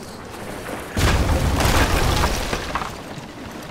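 An explosion bursts with crackling debris.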